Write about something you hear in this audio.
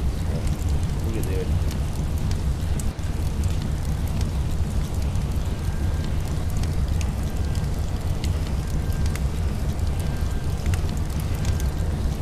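A fire hose sprays water with a steady hiss.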